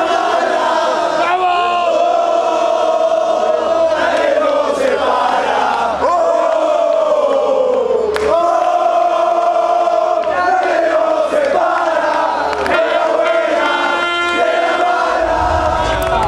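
A crowd of fans sings and chants loudly in unison.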